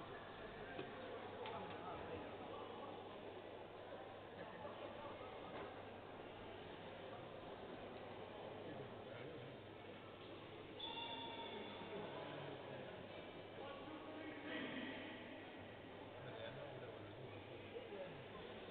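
Several men talk quietly in a large echoing hall.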